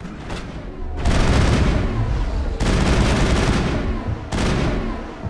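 A powerful energy blast booms and roars.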